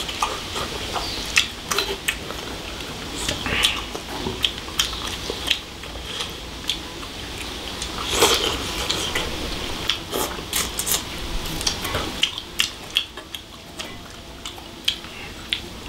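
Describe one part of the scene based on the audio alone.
Chopsticks click against bowls.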